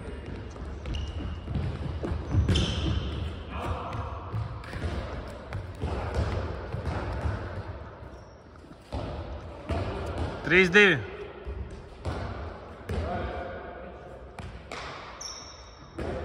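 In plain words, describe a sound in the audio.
A ball thuds on a hard floor and echoes around a large hall.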